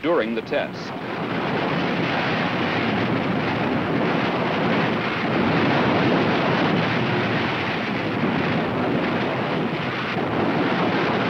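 An explosion roars with a long rushing rumble.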